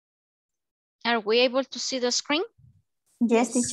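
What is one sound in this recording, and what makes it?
A young woman speaks brightly in a high voice over an online call.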